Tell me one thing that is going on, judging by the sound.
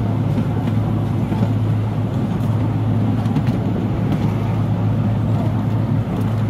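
Train wheels rumble and clack on the rails.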